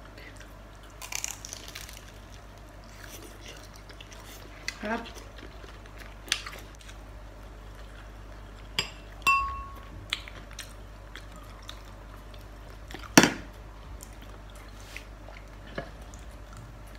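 Crispy food crunches loudly as it is bitten and chewed.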